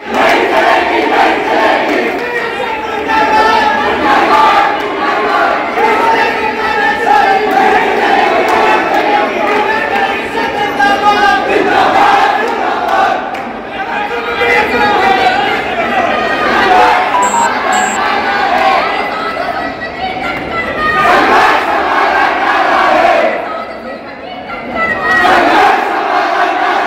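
A large crowd of men shouts and chants loudly in a reverberant hall.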